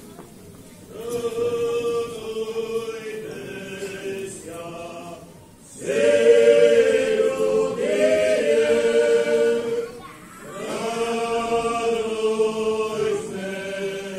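A child sings through loudspeakers in an echoing hall.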